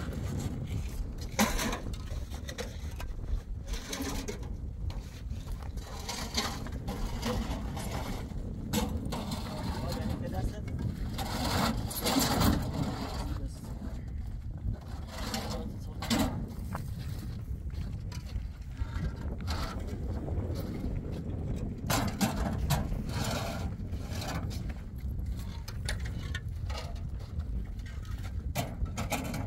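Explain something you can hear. Concrete blocks clunk and scrape as they are stacked.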